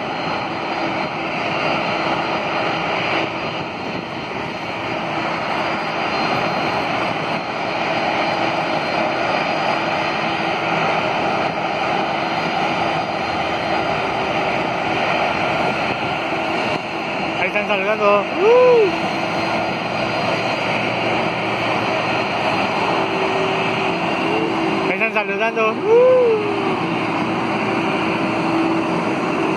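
The turbofan engines of a four-engine Boeing 747-400 jet airliner whine and roar as it taxis.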